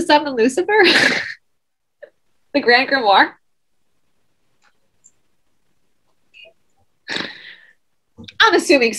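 A woman talks with animation over an online call, in short bursts.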